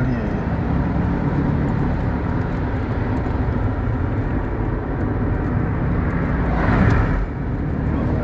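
Tyres roll over a paved road.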